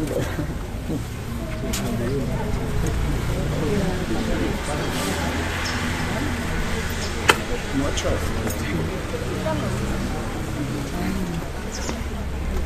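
A crowd of men and women murmur and talk quietly nearby.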